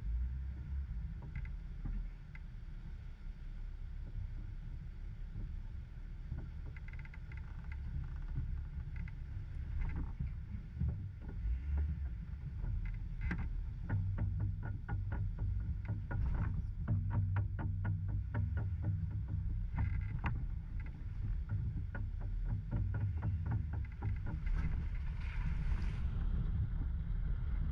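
A vehicle engine idles with a low rumble close by.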